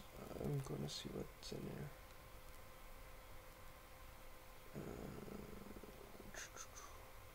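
A young man speaks quietly and briefly close to a microphone.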